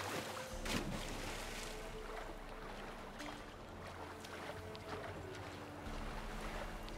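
Water splashes around a swimming horse.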